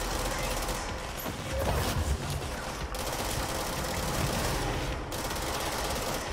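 A pistol fires repeated shots.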